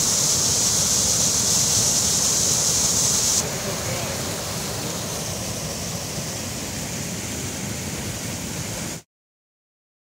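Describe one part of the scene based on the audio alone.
Water rushes loudly out of a pipe.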